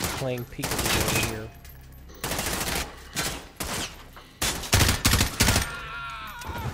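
Rifle shots ring out in bursts, echoing indoors.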